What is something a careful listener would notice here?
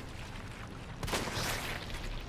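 A pistol fires a single loud shot.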